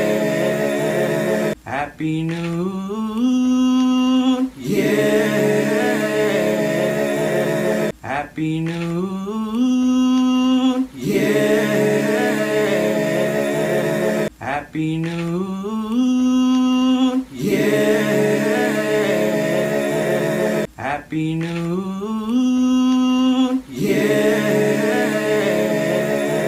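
Several young men sing together close to a phone microphone.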